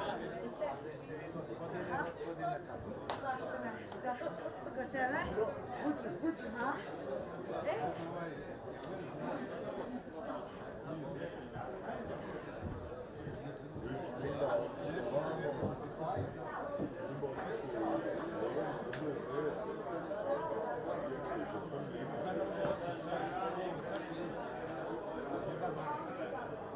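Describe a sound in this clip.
A crowd of spectators chatters and calls out across an open stadium.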